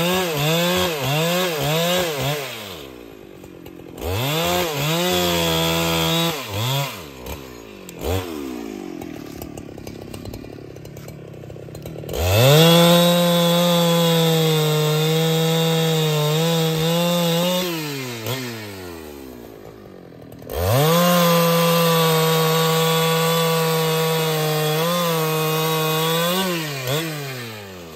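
A chainsaw engine roars loudly, revving up and down and dropping to an idle between cuts.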